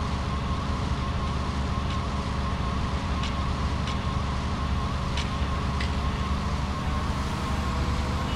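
Roller skates roll along pavement and come closer.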